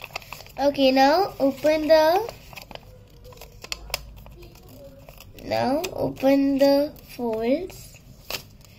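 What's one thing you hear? A young girl speaks calmly close by.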